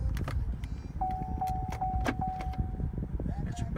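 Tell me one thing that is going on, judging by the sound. A car's reversing chime beeps several times in quick succession.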